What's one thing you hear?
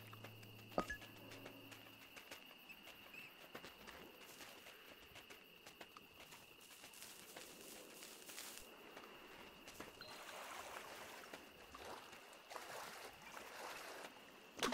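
Paws patter and crunch quickly through snow.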